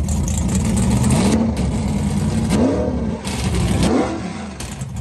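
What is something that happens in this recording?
A truck engine revs up and down.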